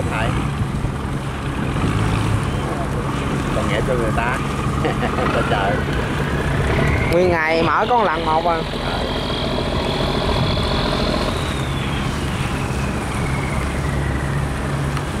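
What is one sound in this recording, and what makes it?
Boat engines hum and chug steadily on the water.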